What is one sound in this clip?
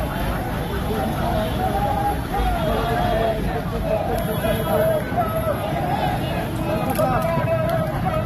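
Several men shout and talk excitedly nearby.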